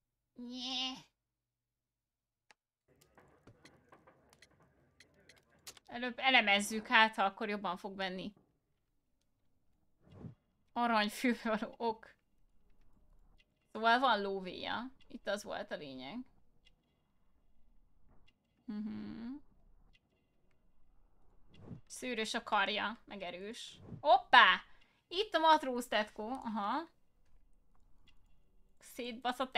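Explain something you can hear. A young woman talks with animation into a microphone, close by.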